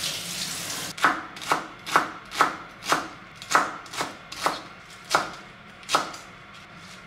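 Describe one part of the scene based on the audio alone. A knife chops rapidly on a wooden cutting board.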